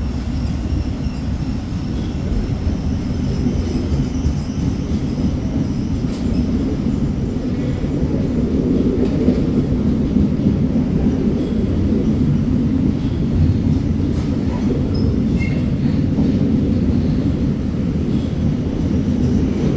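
Wagon wheels clatter and squeal on the rails.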